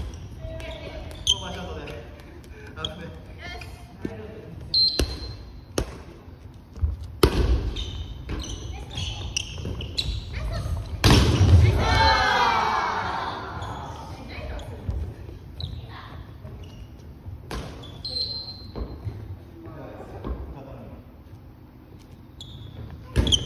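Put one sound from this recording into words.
A ball is struck by hands with sharp slaps.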